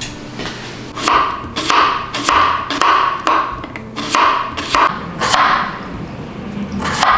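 A knife chops a cucumber on a wooden board with sharp taps.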